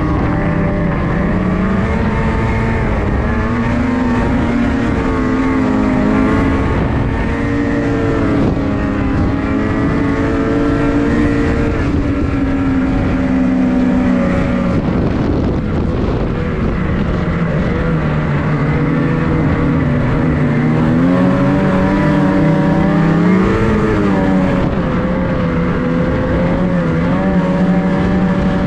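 A snowmobile engine roars loudly up close, its pitch rising and falling as it speeds up and slows.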